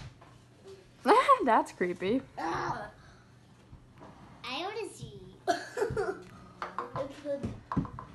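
A young boy talks and giggles close by.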